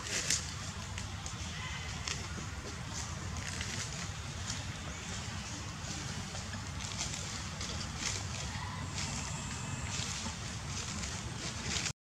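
A monkey softly picks through another monkey's fur.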